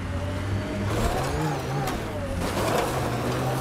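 A vehicle crashes with a loud thud and scraping.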